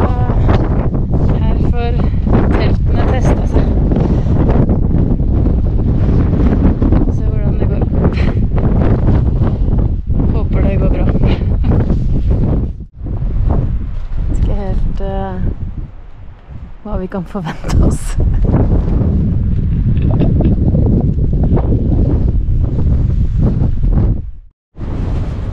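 Wind buffets loudly across open ground.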